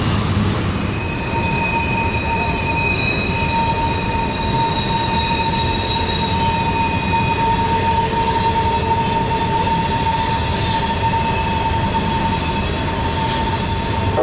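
A long freight train rumbles steadily past at a distance.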